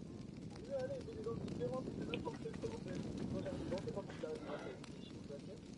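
A torch flame crackles close by.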